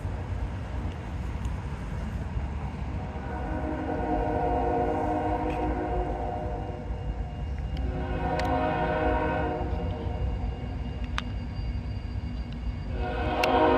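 A railway crossing bell rings steadily in the distance.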